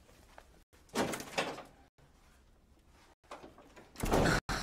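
A door opens and shuts with a thud.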